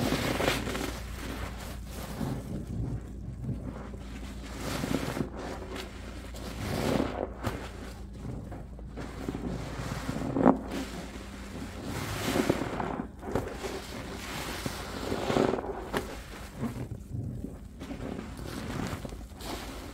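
Soap suds crackle and pop softly.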